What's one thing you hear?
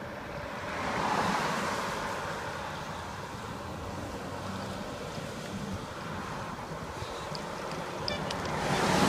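Cars and trucks pass by on a road outdoors.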